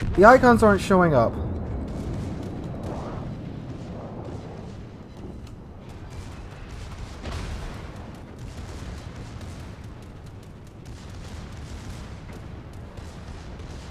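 Heavy guns boom and rumble.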